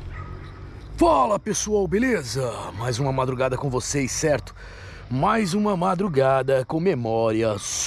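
A man speaks close up, in a low, animated voice.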